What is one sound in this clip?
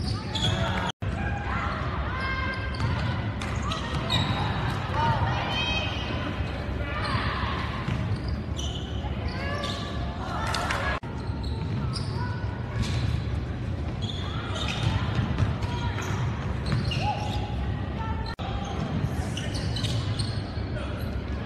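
A crowd cheers and shouts throughout a large echoing gym.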